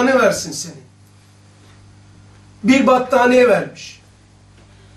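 An older man speaks calmly into a microphone in short phrases.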